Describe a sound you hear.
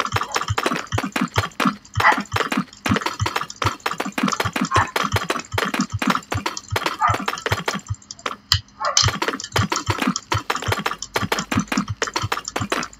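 Stone blocks knock in quick succession as they are placed.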